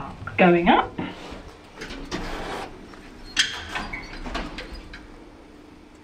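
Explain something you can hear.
Elevator doors slide open with a rumble.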